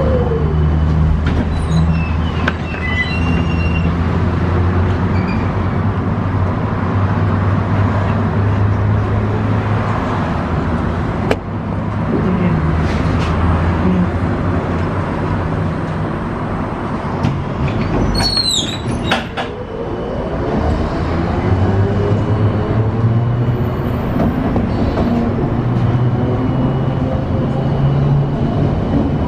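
A bus engine hums and rumbles steadily while driving.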